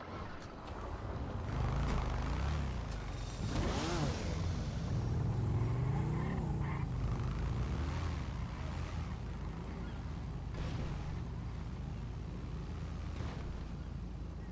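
A car engine idles low and steady.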